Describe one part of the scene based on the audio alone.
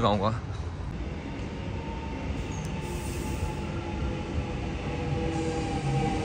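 A train rumbles slowly into a station with a low electric whine.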